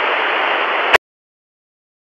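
A television clicks off abruptly.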